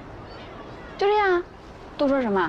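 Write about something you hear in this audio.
A young woman speaks a few short words close by.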